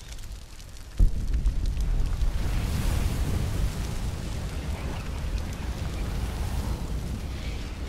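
A sudden burst of fire roars and rumbles steadily.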